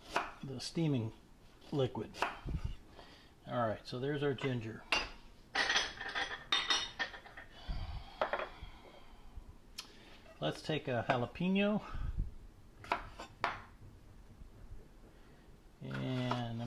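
A knife taps on a wooden cutting board as it chops.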